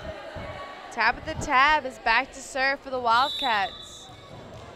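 Young women shout a loud, sing-song cheer that echoes through a large hall.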